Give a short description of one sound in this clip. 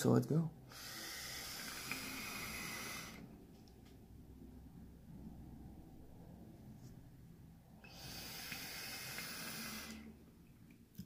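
A vape device hisses and crackles as a man draws on it.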